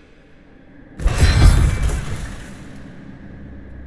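A loud crashing blast rings out and slowly fades.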